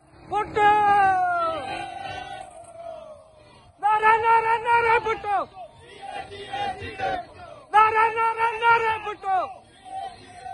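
A man shouts slogans loudly and rhythmically.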